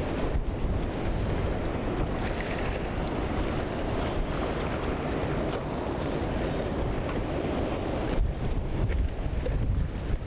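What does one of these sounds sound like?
A fast river rushes over rocks.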